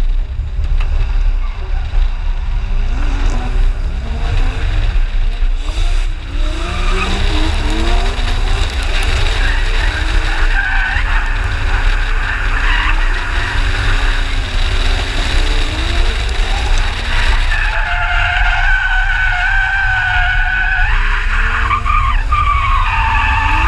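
A car engine revs hard, rising and falling again and again.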